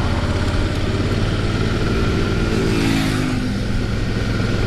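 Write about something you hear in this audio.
Another motorcycle approaches and roars past, its pitch dropping.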